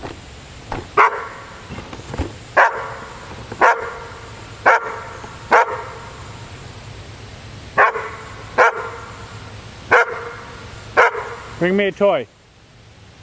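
A dog barks repeatedly nearby.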